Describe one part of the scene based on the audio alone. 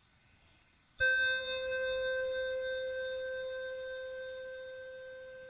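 An electronic keyboard plays a single sustained note that slowly fades.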